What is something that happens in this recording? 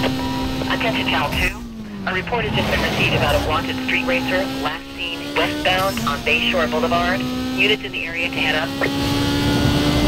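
Tyres screech as a car slides through a turn.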